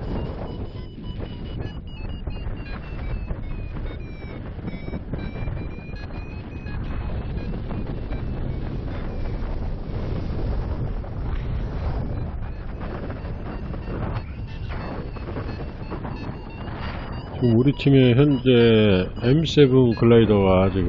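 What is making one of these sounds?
Wind rushes and buffets steadily outdoors.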